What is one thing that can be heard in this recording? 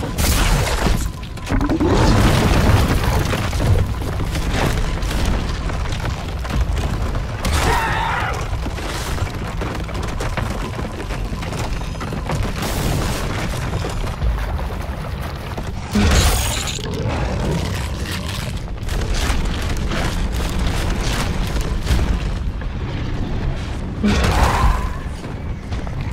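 Heavy footsteps of a large creature thud steadily.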